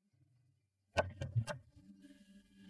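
Knuckles knock on a wooden door.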